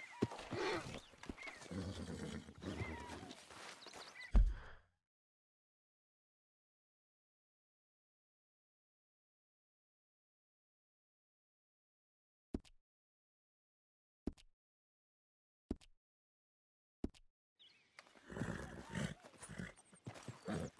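A horse's hooves thud on dirt.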